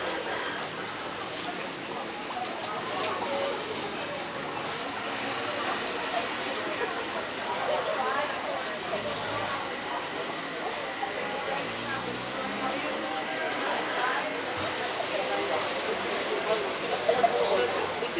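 A crowd of people chatter in the background.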